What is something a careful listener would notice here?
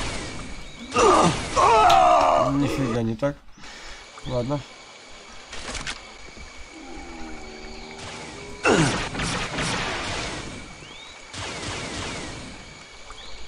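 Laser guns fire in short zapping bursts.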